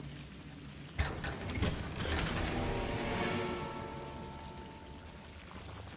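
A chest creaks open with a shimmering magical chime.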